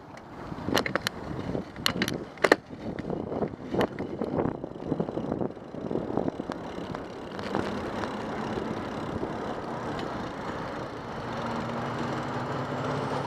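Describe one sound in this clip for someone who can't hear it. Wind buffets loudly past a microphone while riding along a road.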